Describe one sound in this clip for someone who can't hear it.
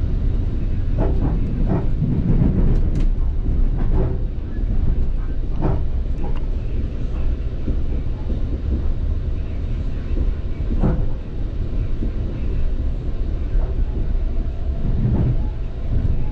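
Train wheels clack and knock over rail joints.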